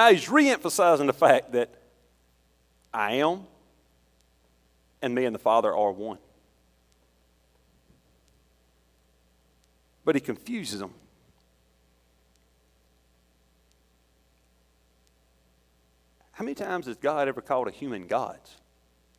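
A middle-aged man speaks calmly through a microphone in a large echoing room, pausing often.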